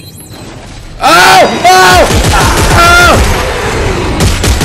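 A creature shrieks loudly.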